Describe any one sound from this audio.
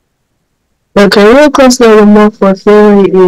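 A young woman speaks calmly into a microphone, close by.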